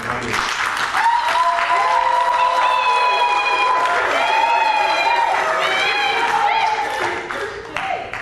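A keyboard plays sustained chords loudly.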